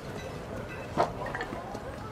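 A marker taps down on a table.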